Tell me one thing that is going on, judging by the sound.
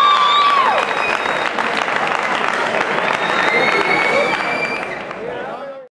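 A crowd cheers and whistles loudly in a large echoing hall.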